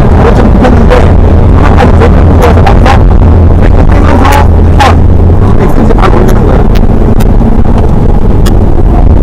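A car engine roars loudly inside the cabin, rising and falling.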